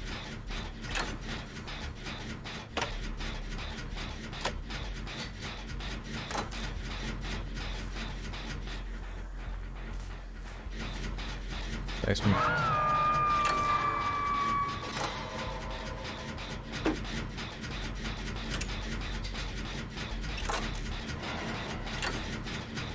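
Mechanical parts rattle and click steadily as a machine is worked on by hand.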